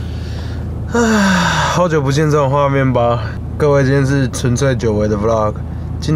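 A young man talks animatedly and close by, in a drawn-out, sing-song voice.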